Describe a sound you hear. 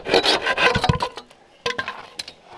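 A hollow bamboo pole knocks onto the ground.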